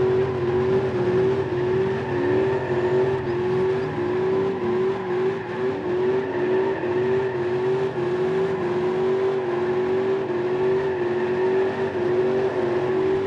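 A car engine hums steadily at high revs.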